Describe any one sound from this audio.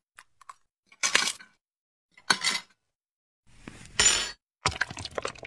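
A knife cuts with a crunch through a brittle phone-shaped treat.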